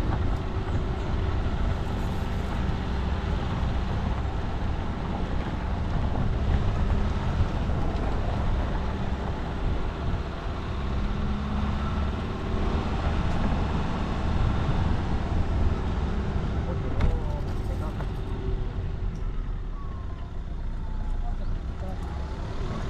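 Tyres crunch and rattle over a rough dirt road.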